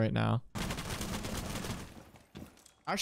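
Gunfire crackles rapidly in a video game.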